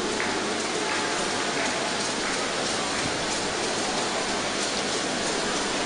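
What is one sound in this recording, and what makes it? A large crowd chatters, shouts and cheers loudly in a vast echoing hall.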